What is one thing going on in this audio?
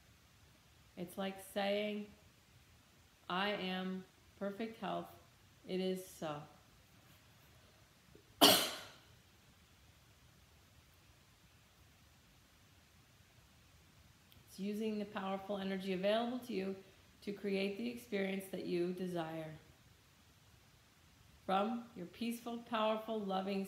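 A middle-aged woman speaks with animation close by, pausing now and then.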